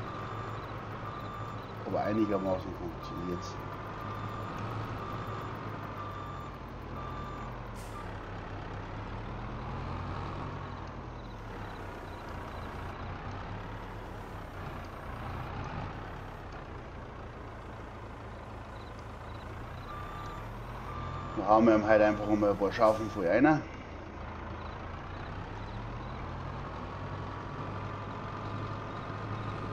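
A heavy loader engine hums steadily.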